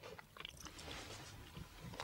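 A man blows his nose into a napkin.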